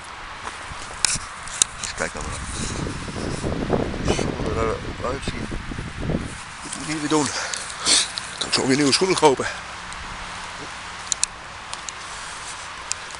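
Footsteps crunch on leaves and twigs.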